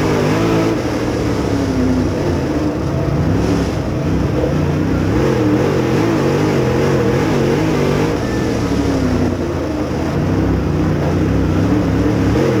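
A dirt late model race car's V8 engine roars at full throttle and surges with the throttle through the turns, heard from inside the car.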